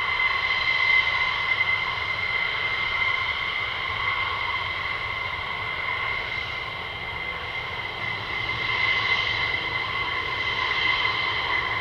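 A jet engine whines loudly and steadily outdoors.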